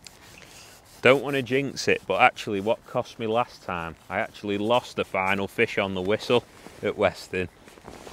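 A young man talks calmly, close to the microphone.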